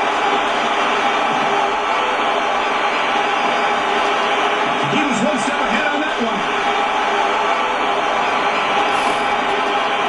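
Blows thud heavily as two fighters trade punches.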